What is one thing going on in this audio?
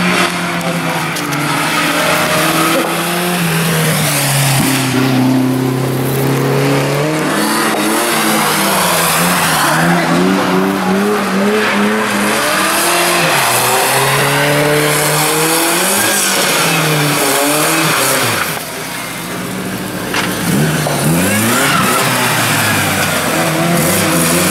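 Tyres hiss and squeal on a wet road.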